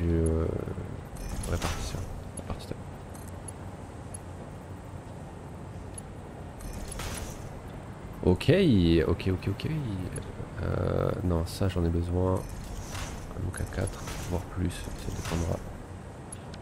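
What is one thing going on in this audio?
Electronic chimes and whooshes sound as machine parts snap into place.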